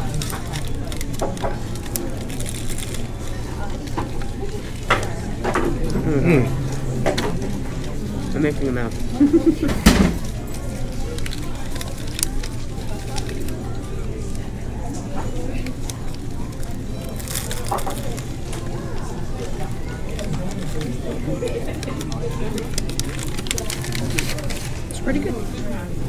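Paper wrapping crinkles and rustles.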